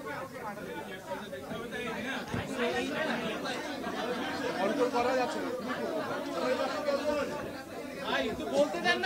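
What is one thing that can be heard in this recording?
A man speaks calmly into microphones.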